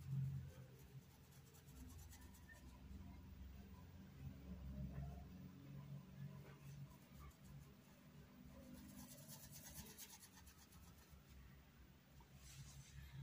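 A paintbrush softly brushes across fabric.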